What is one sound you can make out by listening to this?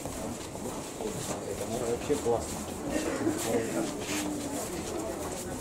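A man talks nearby in a casual tone.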